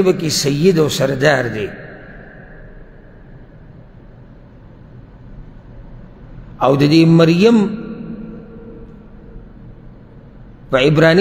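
A man speaks slowly and calmly into a microphone in an echoing room, with long pauses.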